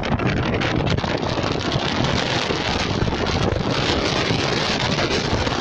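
Wind rushes loudly past the car.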